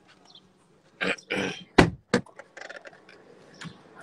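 A car door opens with a thud.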